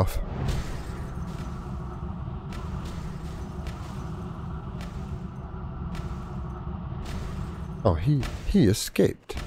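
Magic spells crackle and strike again and again.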